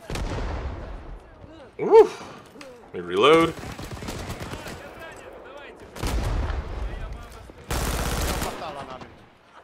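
Explosions boom in the distance.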